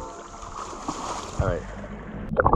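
Water flows and ripples in a river.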